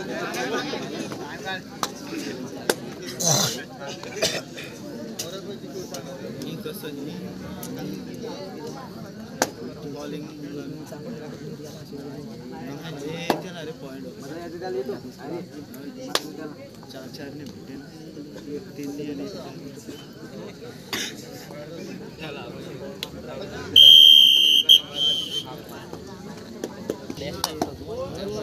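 A crowd chatters and calls out outdoors.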